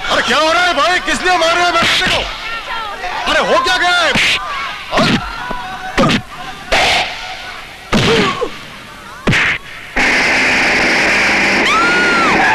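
A crowd of men shouts and clamours.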